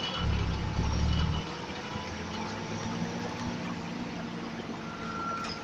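A bus body rattles and creaks over the road.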